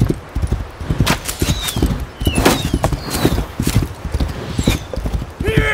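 Flaming arrows whoosh past overhead.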